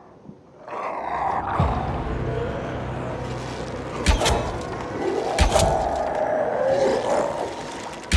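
A monster snarls and groans close by.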